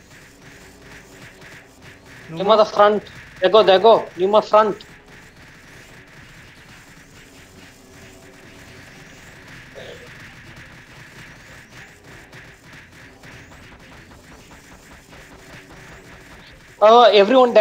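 Magic spells burst and crackle in a game.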